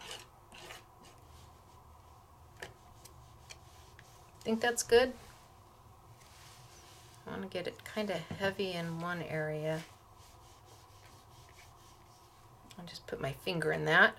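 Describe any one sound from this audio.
A plastic palette knife scrapes softly across card.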